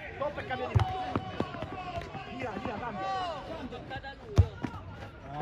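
A foot kicks a football with a dull thud.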